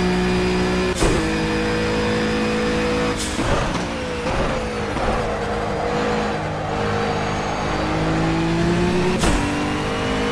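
A racing car's gearbox clunks sharply on each shift.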